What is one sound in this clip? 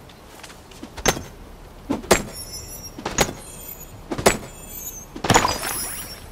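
A pick strikes rock with sharp, ringing cracks.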